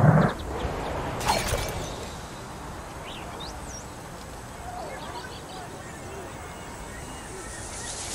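Leaves rustle as something crashes into a bush.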